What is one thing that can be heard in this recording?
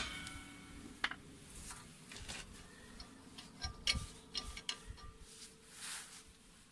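Metal parts clink lightly as a hand works on a wheel hub.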